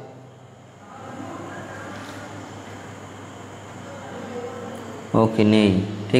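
A man speaks softly close to a microphone.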